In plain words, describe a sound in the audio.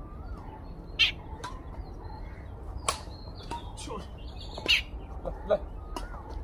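Badminton rackets hit a shuttlecock back and forth with sharp pops.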